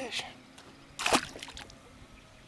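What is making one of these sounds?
A fish splashes into the water.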